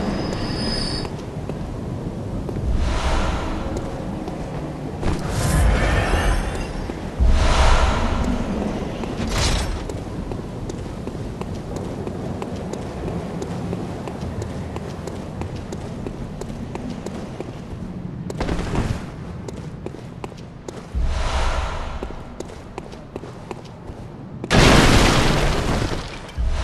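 Footsteps clatter on stone as a figure runs.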